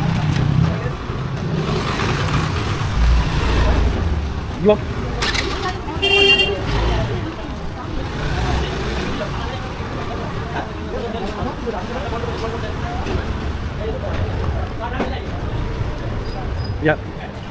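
Motorbikes ride past along a narrow street.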